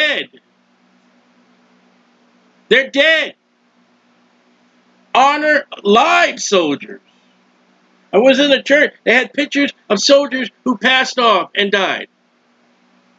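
A man talks with animation into a close microphone, with pauses.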